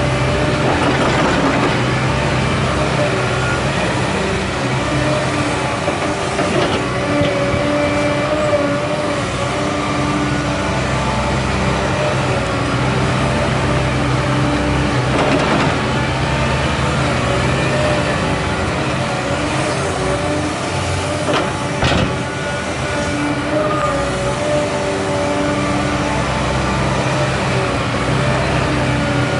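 Dirt thuds and scrapes as an excavator bucket digs and dumps soil.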